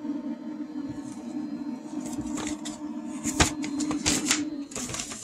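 A paper leaflet rustles in the hands.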